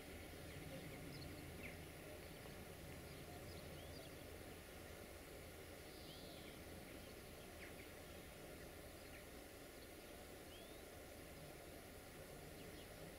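A diesel locomotive engine rumbles low and steadily in the distance.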